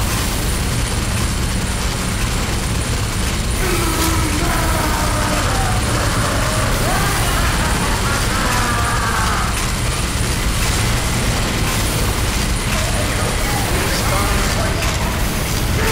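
A heavy machine gun fires in a rapid, continuous roar.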